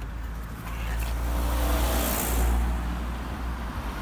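A car rushes past close by.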